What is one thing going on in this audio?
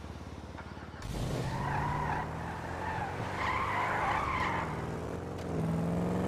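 A car engine starts and revs as the car pulls away.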